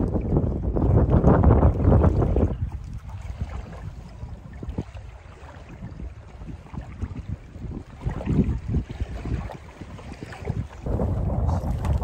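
Water laps against an inflatable boat.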